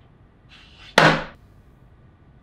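A flat wooden board topples and clatters onto a table.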